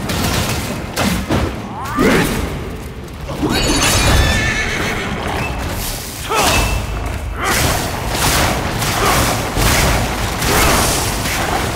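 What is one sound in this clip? Weapon blows strike with heavy thuds.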